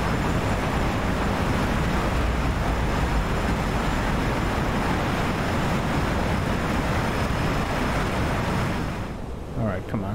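A jet engine roars loudly and steadily.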